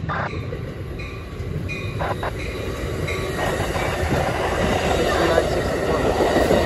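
A passing train roars loudly close by.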